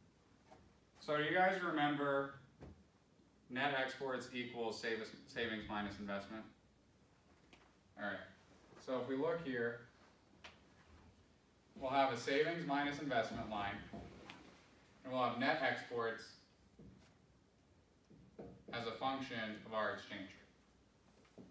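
A man speaks calmly to a room, a little way off.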